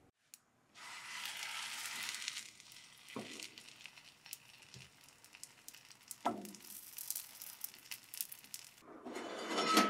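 Bread sizzles in a hot frying pan.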